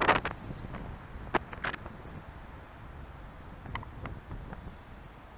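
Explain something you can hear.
Wind rumbles and buffets against the microphone.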